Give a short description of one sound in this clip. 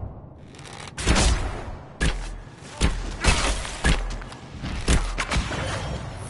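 Arrows twang from a bow.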